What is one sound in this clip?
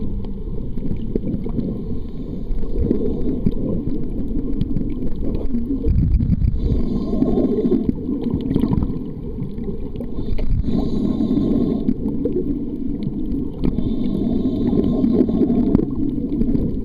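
Water swishes and rumbles in a muffled wash, heard from underwater.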